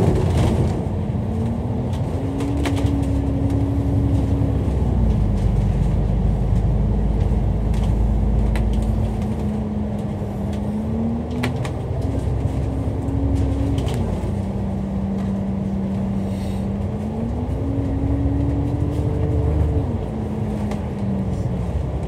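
Traffic hums steadily on the road nearby.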